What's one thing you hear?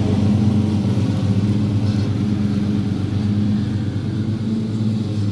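A walk-behind lawn mower's small petrol engine drones while cutting grass.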